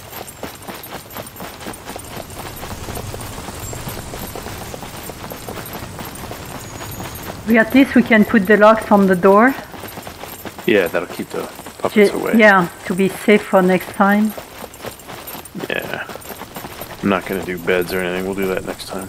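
Quick footsteps run on a paved road.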